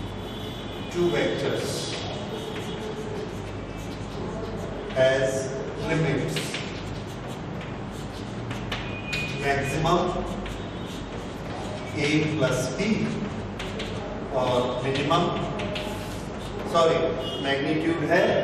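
A man speaks calmly in a slow lecturing voice.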